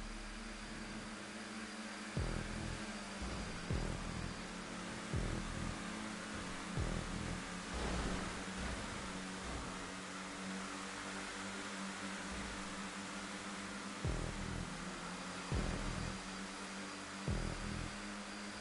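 Race car engines roar steadily at high speed.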